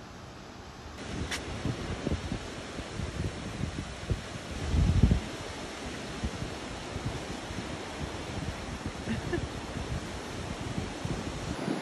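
Waves break and wash onto a beach outdoors in wind.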